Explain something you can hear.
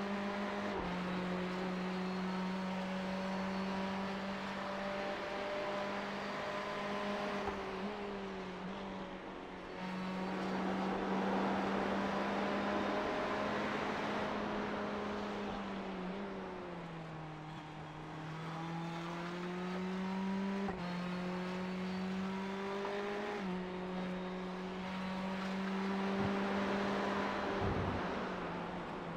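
A racing car engine drones steadily, its pitch shifting as it changes gear and speed.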